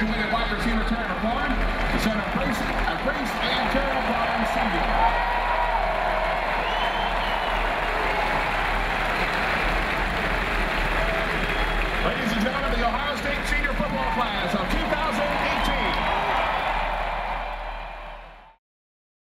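A large stadium crowd cheers and roars loudly outdoors.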